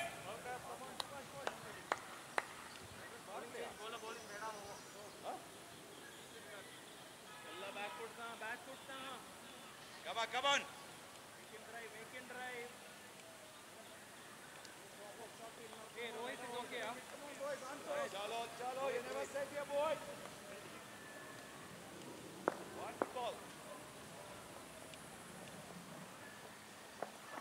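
Men talk and call out across an open field at a distance.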